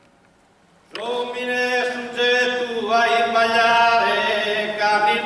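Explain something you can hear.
A group of men sing together in close harmony in a large echoing hall.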